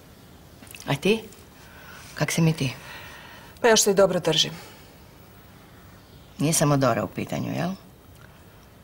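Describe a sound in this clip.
An older woman speaks calmly and firmly close by.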